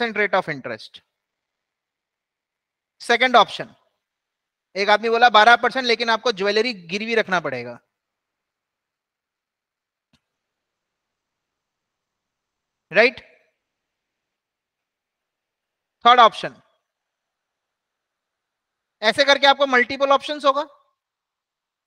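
A man speaks calmly through a microphone, in short bursts with long pauses.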